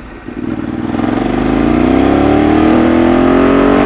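A V-twin sport bike engine revs up as the bike accelerates.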